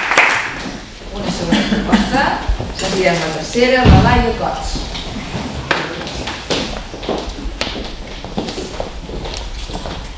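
A middle-aged woman speaks calmly to a room.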